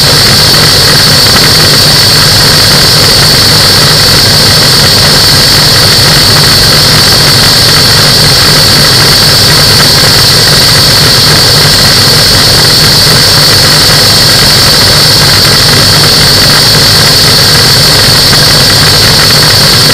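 Wind rushes hard past the microphone.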